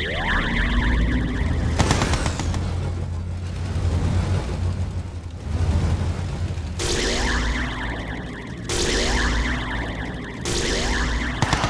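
Laser weapons zap in short bursts.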